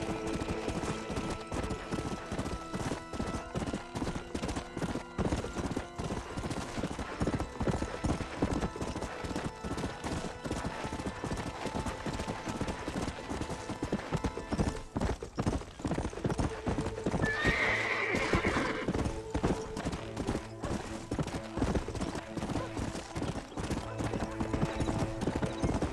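Horse hooves pound steadily on dry ground at a gallop.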